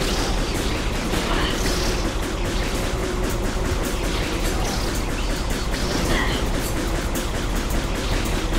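A rapid-fire gun blasts in quick bursts.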